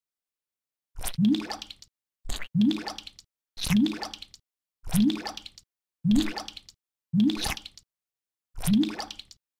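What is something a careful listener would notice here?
Vegetables plop into water one after another.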